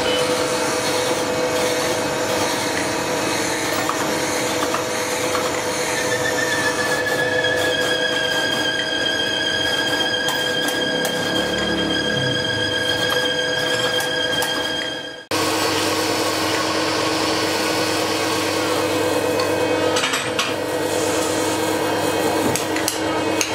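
A milling machine grinds steadily into metal with a loud, harsh whine.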